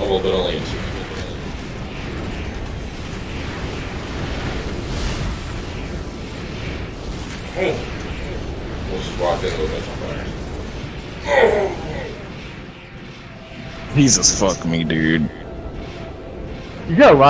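A robot's thrusters roar steadily.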